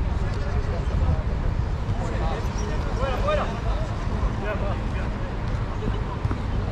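Young men shout to each other in the open air.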